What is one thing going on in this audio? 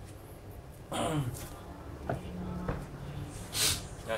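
A man sits down with a thump on a wooden floor.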